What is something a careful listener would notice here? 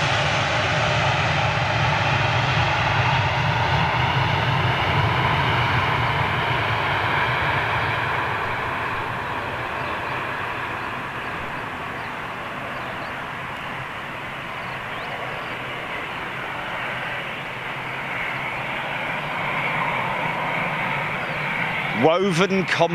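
Jet engines roar loudly close by.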